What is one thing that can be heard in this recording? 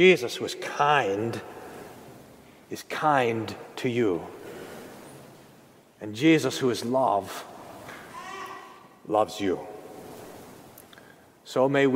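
A man speaks calmly into a microphone in an echoing hall, with pauses between phrases.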